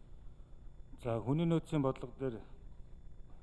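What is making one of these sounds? A younger man speaks a few words into a microphone.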